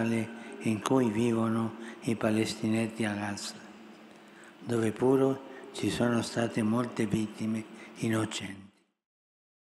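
An elderly man speaks slowly and calmly through a microphone.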